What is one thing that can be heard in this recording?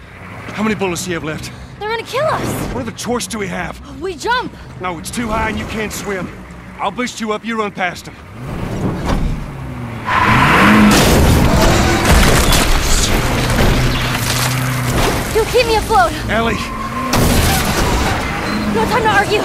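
A young girl speaks in reply.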